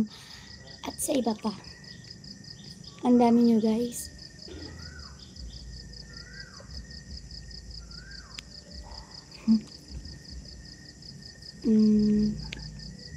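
A young woman speaks briefly and close by, in short bursts.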